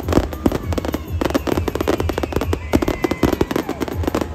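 Firework rockets whistle and whizz through the air.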